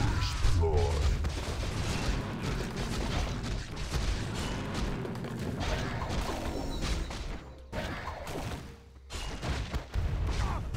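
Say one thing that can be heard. Game combat sounds clash and crackle with spell effects.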